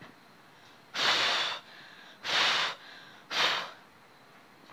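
A young woman breathes out forcefully in short, loud bursts.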